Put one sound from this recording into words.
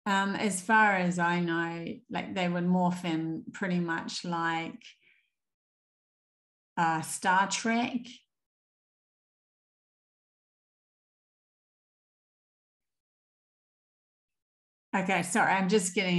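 A young woman speaks calmly over an online call, pausing between phrases.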